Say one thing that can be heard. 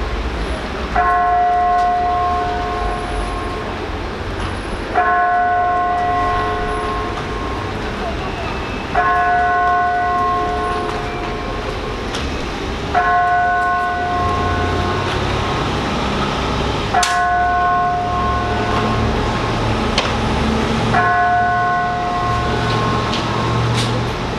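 A bell tolls, each stroke ringing out and fading.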